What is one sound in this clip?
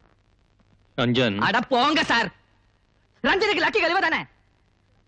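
A man speaks loudly and with animation, close by.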